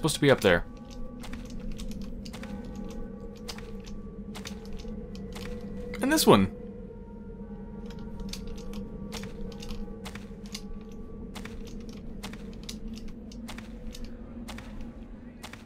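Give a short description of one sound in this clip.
Footsteps tread along a stone passage.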